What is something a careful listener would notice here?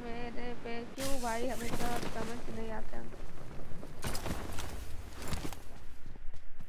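Wind rushes loudly past a parachute descending.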